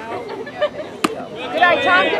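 A baseball smacks into a catcher's leather mitt.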